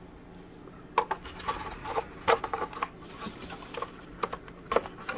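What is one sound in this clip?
A small knife blade scrapes lightly along thin wood.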